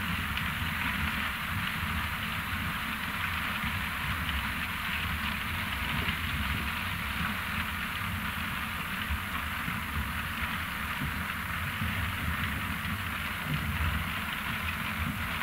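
A heavy harvesting machine's engine rumbles steadily.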